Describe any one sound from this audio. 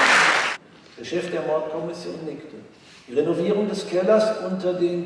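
An older man speaks calmly into a microphone in a large hall.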